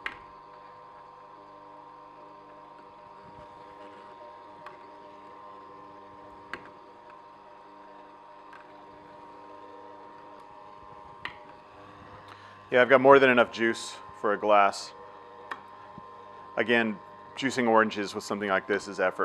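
A juicer motor hums steadily.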